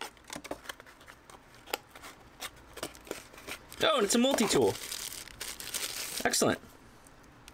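Cardboard packaging rustles and scrapes between hands.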